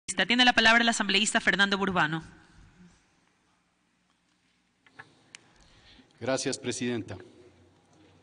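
A woman speaks briefly over a microphone.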